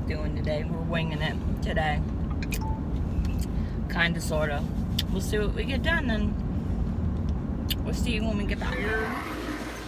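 A car engine hums low and steady from inside the car.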